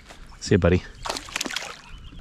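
A fish splashes back into the water.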